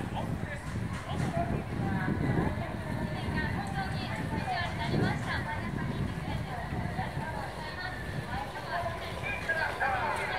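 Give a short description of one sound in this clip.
A young woman sings into a microphone through loudspeakers outdoors.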